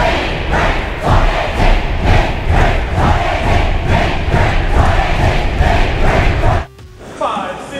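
A large crowd cheers loudly in an echoing gym.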